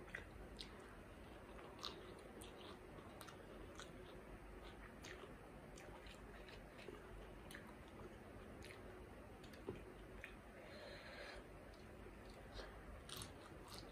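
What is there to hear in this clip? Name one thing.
A woman bites into crispy fried food close to a microphone.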